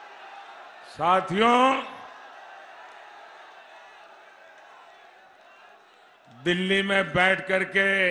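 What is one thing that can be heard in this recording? An elderly man speaks forcefully through a loudspeaker.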